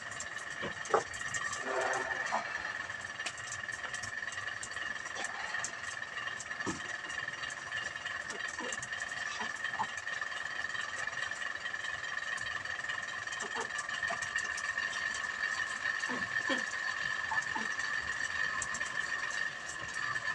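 Burning straw crackles and pops outdoors.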